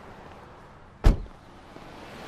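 A car door slams shut with a sharp thud.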